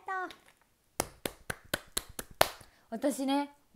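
A young woman claps her hands quickly.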